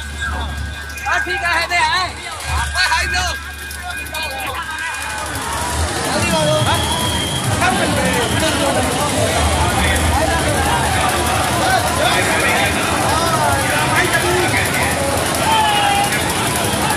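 Men call out loudly nearby.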